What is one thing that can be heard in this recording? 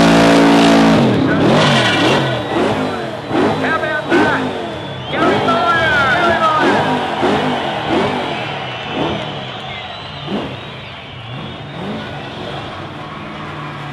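A car engine revs up and down in short bursts.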